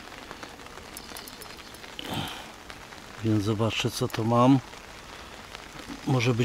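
Rain patters lightly on water outdoors.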